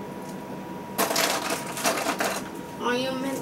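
Small plastic parts rattle and clatter as a boy handles them.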